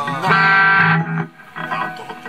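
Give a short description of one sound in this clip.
An electric guitar rings out loudly through amplifiers.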